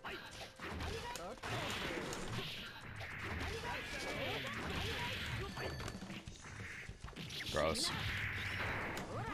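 Punches and kicks smack in quick bursts with whooshing blasts.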